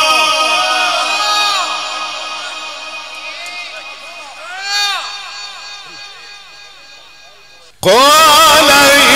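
An elderly man chants in a long, wavering voice through a microphone, with a heavy echo trailing after each phrase.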